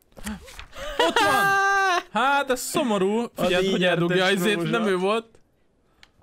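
A young man shouts and laughs excitedly close to a microphone.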